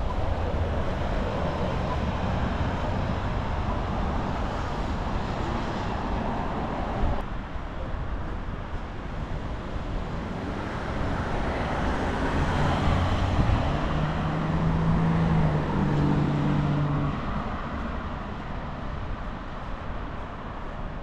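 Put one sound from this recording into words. Cars drive past on a road.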